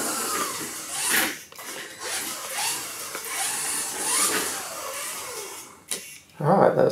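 A small electric motor whines, rising and falling as a toy car races and turns.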